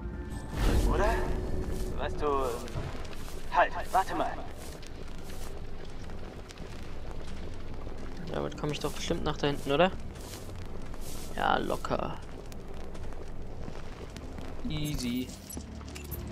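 Footsteps tread softly through rustling leaves.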